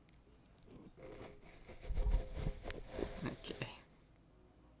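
A young man speaks with animation nearby.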